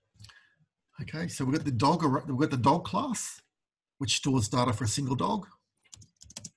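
A man speaks calmly and closely into a microphone.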